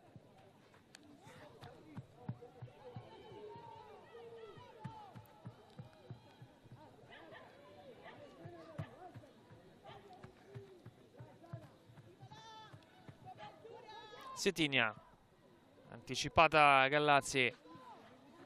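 Young women footballers shout calls to one another outdoors across an open pitch.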